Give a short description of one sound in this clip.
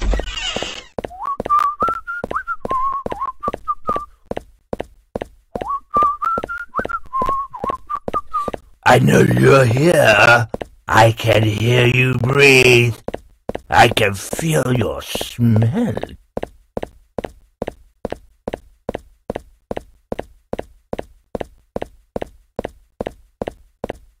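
Footsteps thud quickly and steadily.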